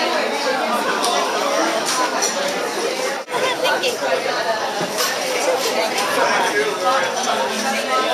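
A crowd of adults chatters steadily indoors.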